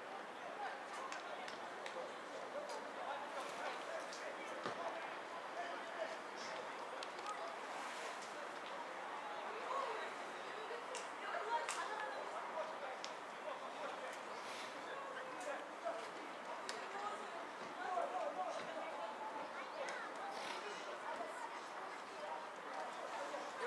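Football players shout to each other across an open outdoor field in the distance.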